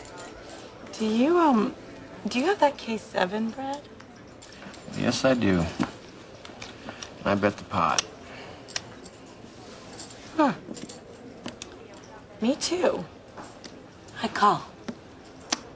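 A young woman talks playfully close by.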